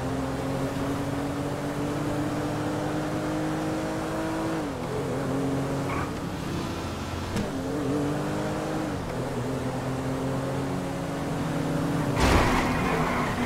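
A car engine hums steadily and shifts pitch as the car speeds along.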